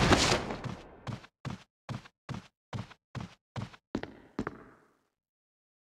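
Footsteps walk steadily across a hard floor.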